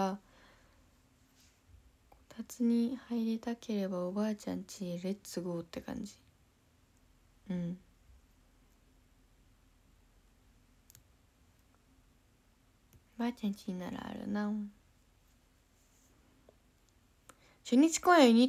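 A young woman speaks softly and close up, with pauses.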